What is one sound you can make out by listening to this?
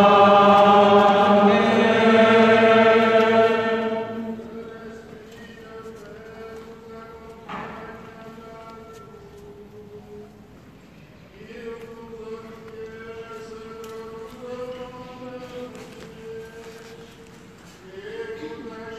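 A choir sings, amplified through loudspeakers, in a large echoing hall.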